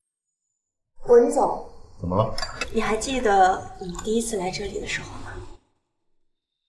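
A young man asks questions calmly, close by.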